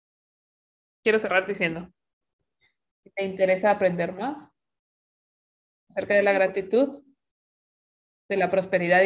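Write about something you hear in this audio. A young woman speaks with animation over an online call, in short bursts with pauses.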